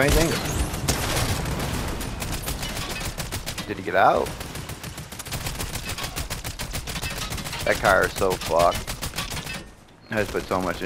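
A rapid-firing gun shoots in quick bursts.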